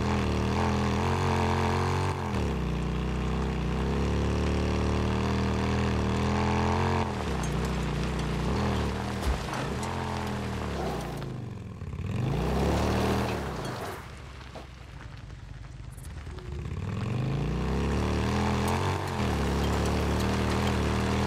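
A motorcycle engine roars and revs, rising and falling in pitch.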